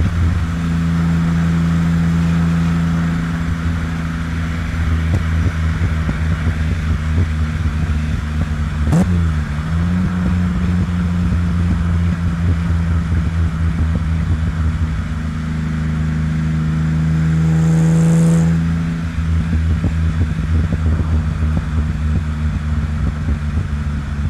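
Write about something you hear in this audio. Tyres roll on an asphalt road.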